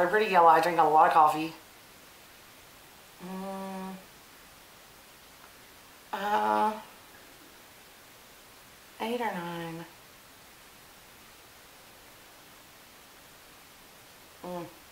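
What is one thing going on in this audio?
A young woman sings short drawn-out notes close by, with pauses between them.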